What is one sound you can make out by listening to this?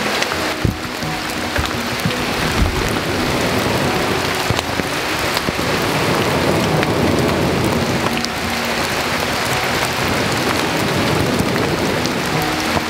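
A wood fire crackles and pops close by.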